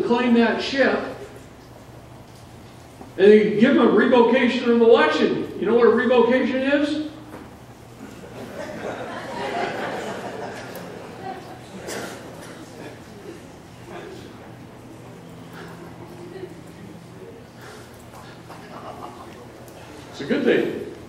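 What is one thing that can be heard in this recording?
A man speaks with animation through a microphone in a large room.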